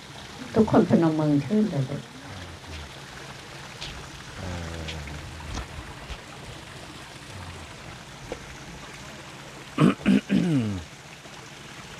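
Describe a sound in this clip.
An elderly man speaks in a slow, chanting voice nearby.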